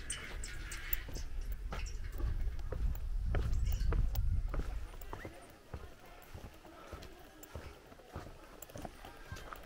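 Footsteps thud on wooden boards at a steady walking pace.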